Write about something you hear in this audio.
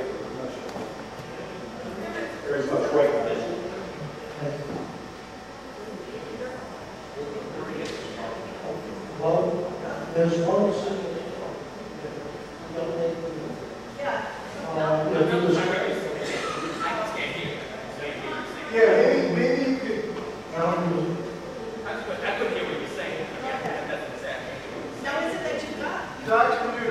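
A man speaks to an audience through a microphone, in a large echoing hall.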